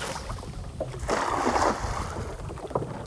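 A cast net splashes onto the water.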